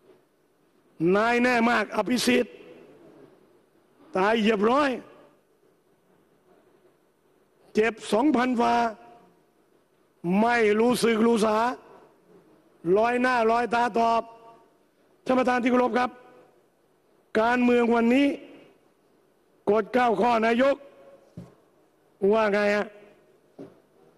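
A middle-aged man speaks firmly into a microphone in short bursts, with pauses between them, in a room that echoes.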